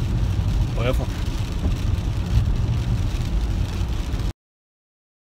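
A car engine and tyres rumble low and steadily from inside the car.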